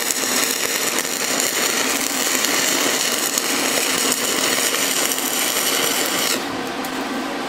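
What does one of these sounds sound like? An electric welding arc crackles and hisses steadily, then stops abruptly.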